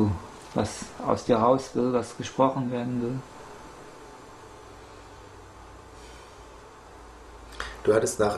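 A man speaks calmly and thoughtfully, close to a microphone, with pauses.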